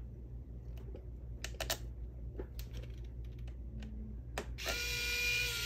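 Small plastic parts click and tap as a screwdriver works on them.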